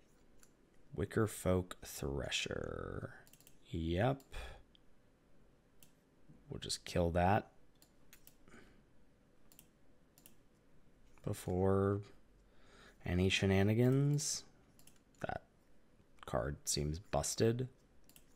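A man talks calmly into a close microphone, in short bursts.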